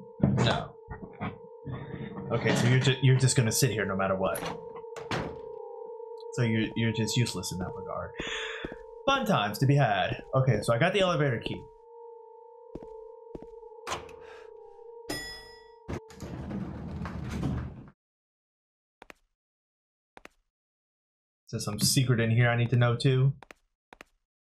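A young man talks with animation into a microphone close by.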